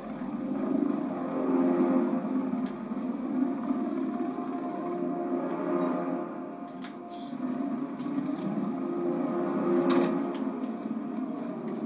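A heavy vehicle engine hums and rumbles steadily.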